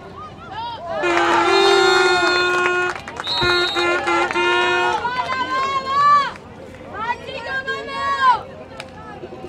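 A crowd of spectators cheers and chants.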